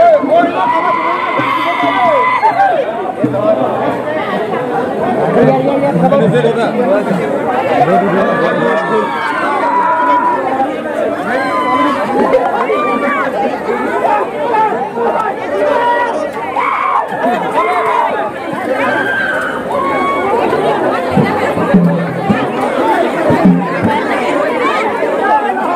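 A large crowd of young men and women chatters loudly outdoors.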